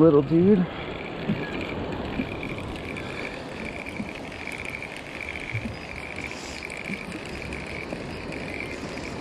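A fishing reel whirs and clicks as its handle is cranked steadily.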